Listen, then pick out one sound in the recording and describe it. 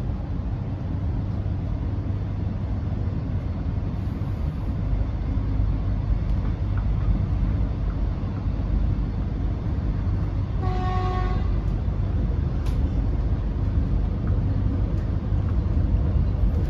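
A vehicle's engine rumbles steadily from inside.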